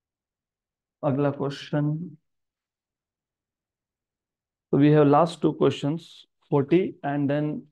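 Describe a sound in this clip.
A man explains calmly into a close microphone, in short bursts with pauses.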